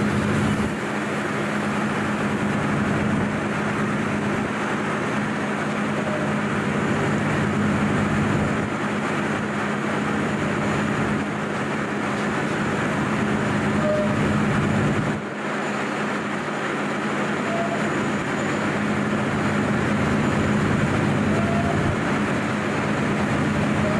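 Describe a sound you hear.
A passing electric train hums steadily and rumbles over the rails close by.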